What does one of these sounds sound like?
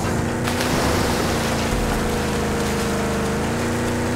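Water splashes around a moving vehicle.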